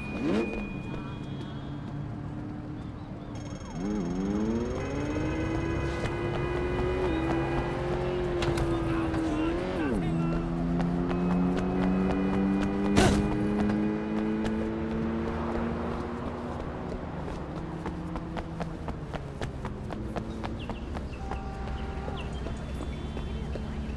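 Footsteps patter quickly on pavement.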